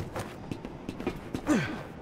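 Footsteps clatter on a metal walkway.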